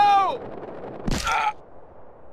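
A body hits the ground with a heavy thud.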